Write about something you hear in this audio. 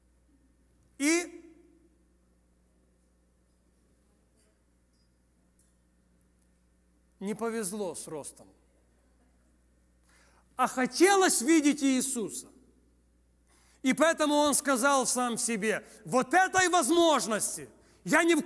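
A middle-aged man speaks with emphasis into a microphone, with long pauses.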